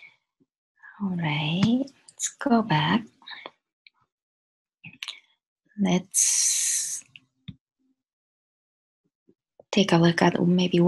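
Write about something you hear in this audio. A woman speaks calmly, heard close through a computer microphone.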